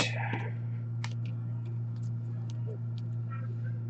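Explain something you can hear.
Card packs rustle as hands open them.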